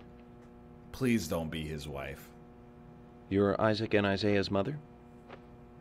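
A man speaks calmly into a close microphone.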